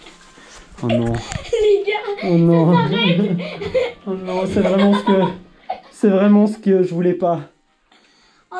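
A young boy laughs and talks with animation close by.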